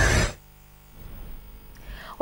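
A young woman reads out calmly and close to a microphone.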